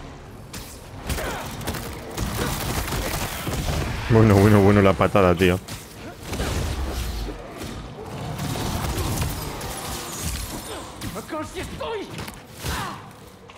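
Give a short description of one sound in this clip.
Heavy blows thud and crack in a fight.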